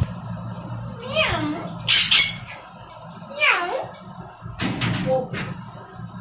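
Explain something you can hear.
A young woman speaks softly and coaxingly close by.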